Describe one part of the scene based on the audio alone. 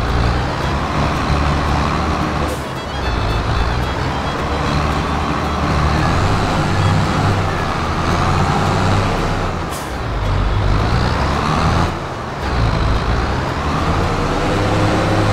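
A tractor engine rumbles and revs.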